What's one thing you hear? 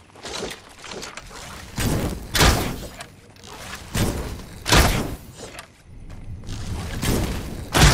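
A bow string twangs as arrows are loosed.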